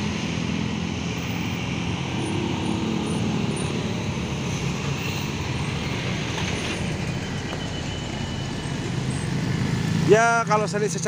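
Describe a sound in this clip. Motorbikes buzz past.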